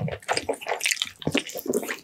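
A man bites into sticky, gelatinous meat with a wet smack.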